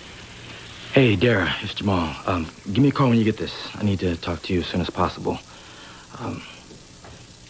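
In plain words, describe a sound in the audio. A man speaks into a phone with animation, close by.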